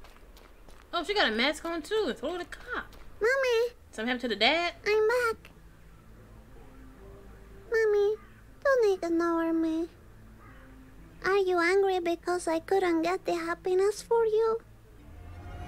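A young girl calls out and pleads in a high, upset voice.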